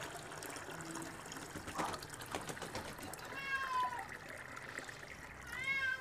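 Water pours and splashes into a container.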